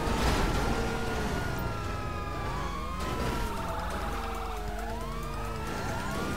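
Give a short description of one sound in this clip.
Police sirens wail close by, rising and falling.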